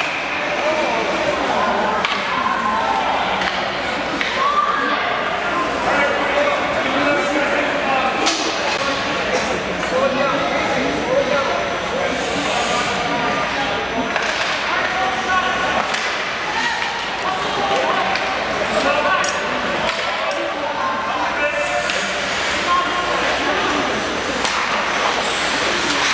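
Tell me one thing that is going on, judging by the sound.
Many adults and children chatter and call out across a large echoing rink.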